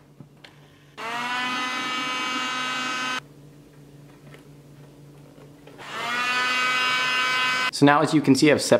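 An electric drill whirs in steady bursts.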